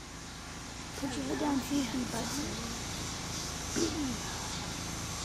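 A young woman speaks softly and sweetly up close.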